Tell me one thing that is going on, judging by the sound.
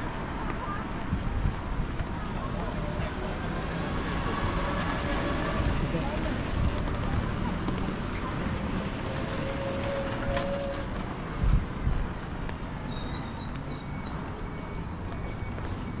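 Footsteps tap steadily on paving.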